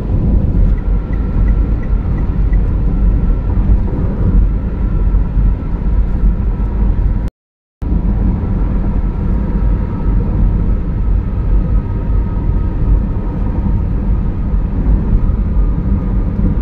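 Tyres roar steadily on a highway, heard from inside a moving car.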